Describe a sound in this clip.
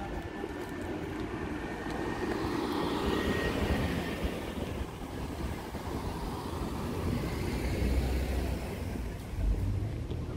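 A car drives slowly past nearby.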